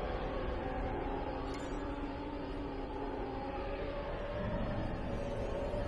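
A spacecraft engine hums steadily.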